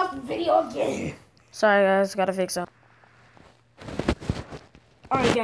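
A young boy talks and laughs close to a phone microphone.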